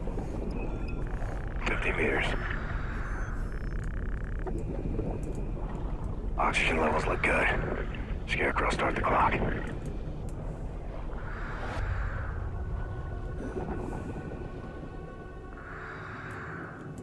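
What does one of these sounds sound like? An underwater propeller motor hums low and steady.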